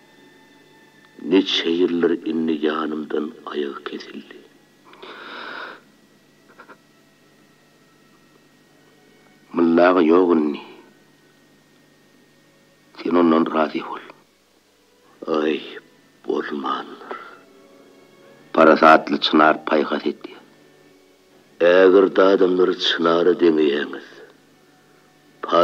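A long-necked lute is plucked.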